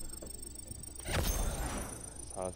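A bright game chime rings out with a shimmering whoosh.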